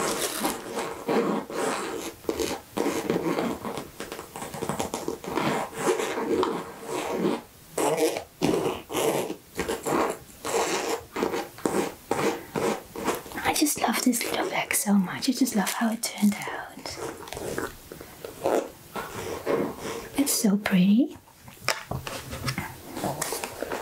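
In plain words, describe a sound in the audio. Fingernails tap and scratch on a fabric pouch.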